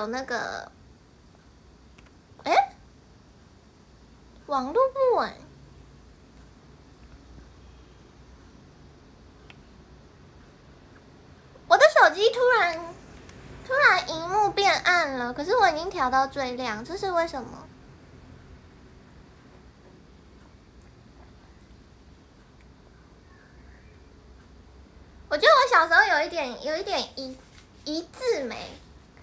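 A young woman speaks close up in short, lively bursts with pauses between them.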